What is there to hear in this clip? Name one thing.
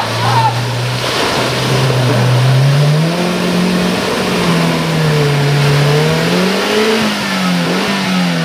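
A small off-road 4x4 engine revs hard as it drives through deep mud.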